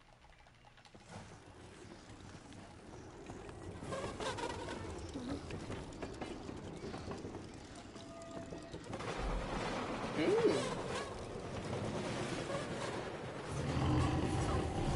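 A wooden cart rumbles and rattles along a track.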